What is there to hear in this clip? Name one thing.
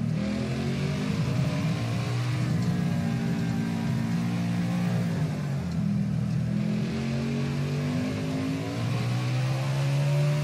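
A race car engine roars loudly, its pitch dropping and rising as it slows and accelerates.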